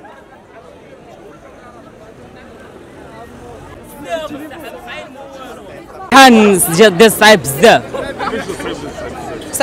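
A crowd of young people chatters outdoors in the background.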